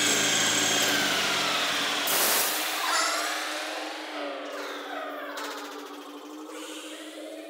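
A metal lathe winds down and comes to a stop.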